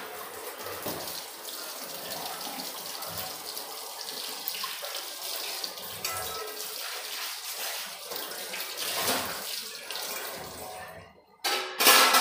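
Dishes are scrubbed and clink against each other.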